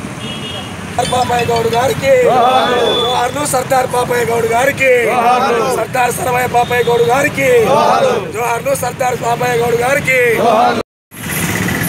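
A man shouts slogans loudly outdoors.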